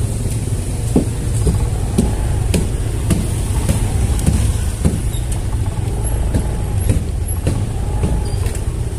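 Tyres bump over railway tracks with rattling knocks.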